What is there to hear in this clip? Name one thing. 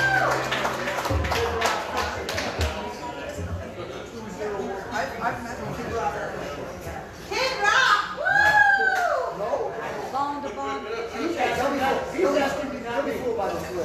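An acoustic guitar is strummed up close.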